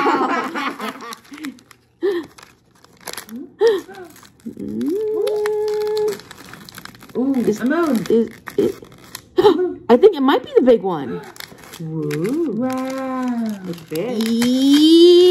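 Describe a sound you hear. Wrapping paper crinkles and rustles as it is folded.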